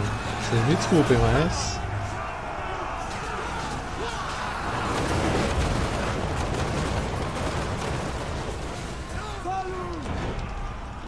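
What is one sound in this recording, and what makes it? A battle roars with the clamor of clashing armies.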